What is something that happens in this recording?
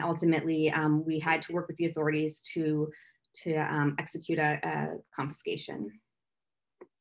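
A woman speaks calmly through a microphone on an online call.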